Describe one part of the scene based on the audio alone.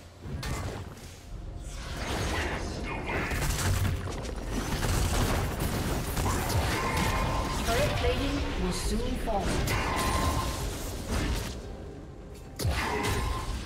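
Game spell effects and hits crackle and boom in a busy fight.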